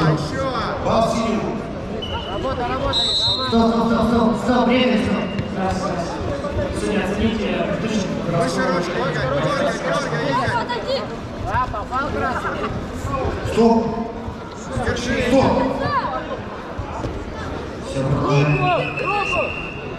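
A man calls out commands loudly.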